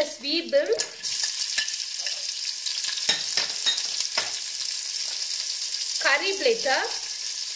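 Chopped onion sizzles loudly in hot oil.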